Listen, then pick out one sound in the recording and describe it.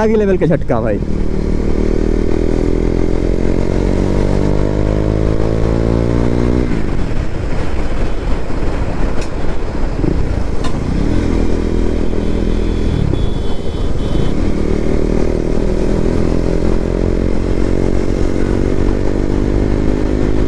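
A motorcycle engine drones steadily, slowly rising in pitch as it speeds up.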